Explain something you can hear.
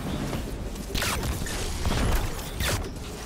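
Shots strike enemies with sharp bursts of impact.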